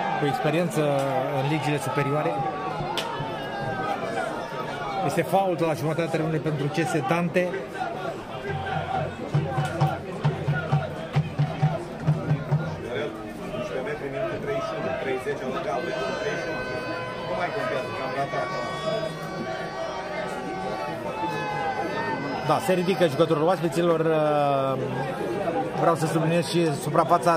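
A large crowd chants and sings loudly outdoors.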